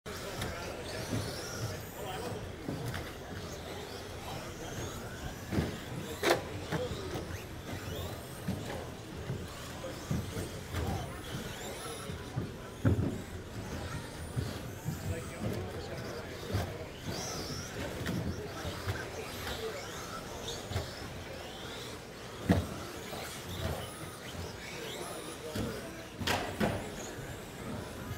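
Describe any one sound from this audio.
Small electric model cars whine as they race around a track, echoing in a large indoor hall.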